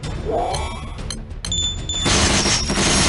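Bright game chimes ring out.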